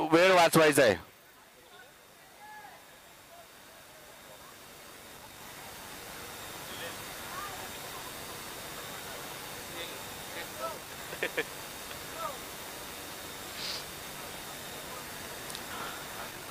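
A crowd of spectators murmurs outdoors in the distance.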